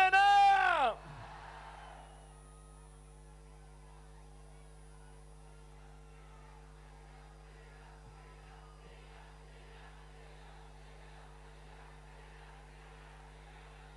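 A large crowd cheers faintly in the distance.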